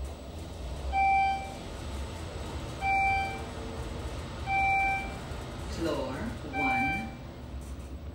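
An elevator beeps briefly at each floor it passes.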